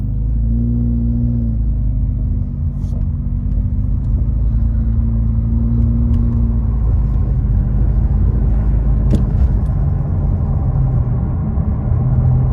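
A car engine hums steadily while driving, heard from inside the car.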